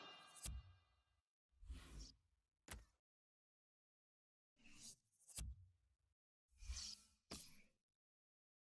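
Short electronic menu sounds whoosh and click.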